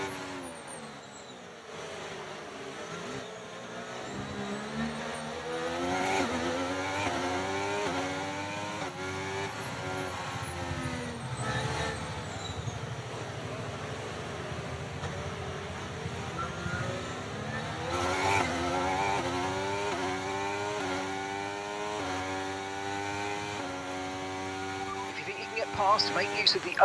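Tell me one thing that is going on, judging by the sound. A racing car engine roars and whines, rising in pitch through each gear and dropping on each shift.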